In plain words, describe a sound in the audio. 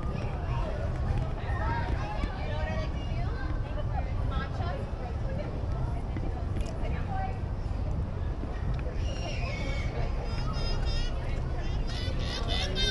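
Several adults chatter nearby in the open air.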